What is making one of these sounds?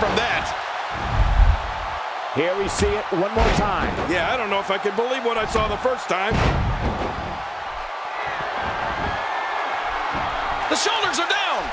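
A large crowd roars and cheers steadily in a big arena.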